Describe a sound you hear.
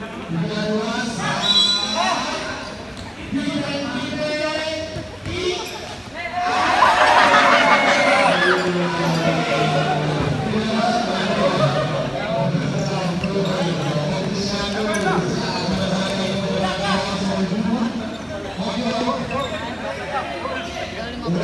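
Young men in a crowd chatter and shout close by in an echoing hall.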